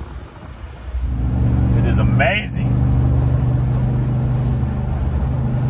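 A truck engine roars loudly as it accelerates.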